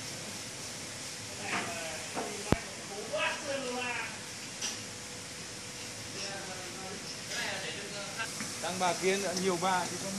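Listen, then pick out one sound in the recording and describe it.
Plastic crates knock and clatter as they are handled.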